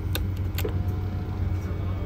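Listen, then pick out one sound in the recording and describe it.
A seat button clicks under a finger.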